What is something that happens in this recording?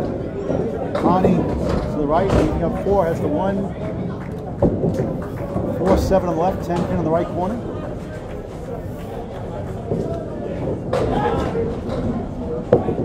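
Bowling pins crash and clatter.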